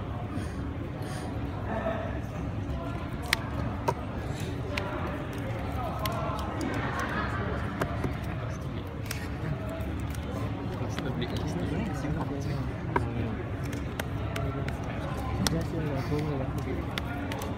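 Playing cards shuffle and flick in a player's hands.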